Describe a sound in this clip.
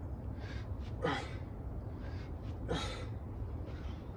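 A man exhales sharply with each kettlebell swing.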